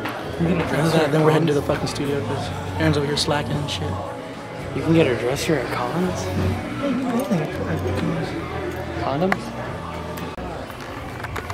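Young men talk casually close by.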